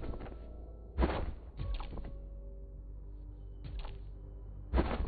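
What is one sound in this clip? Video game sound effects zap and whoosh as a character leaps and fires.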